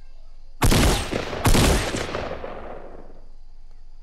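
A shotgun fires twice in a video game, with a ringing tail.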